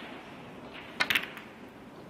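A snooker cue strikes a ball with a sharp tap.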